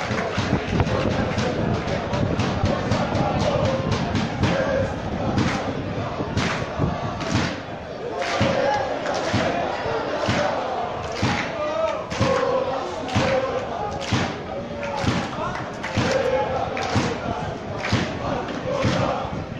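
A large crowd of fans chants loudly in unison outdoors.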